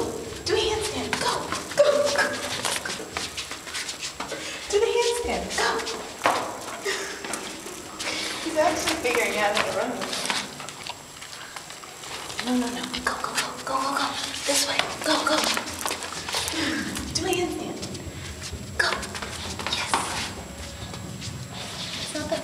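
A dog snuffles and snorts close by.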